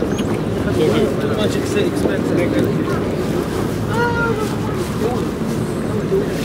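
Men and women chatter nearby in a crowd outdoors.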